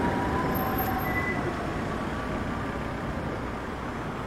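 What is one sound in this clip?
A car drives past close by on a city street.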